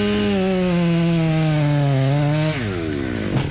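A tree creaks and groans loudly as it starts to tip over.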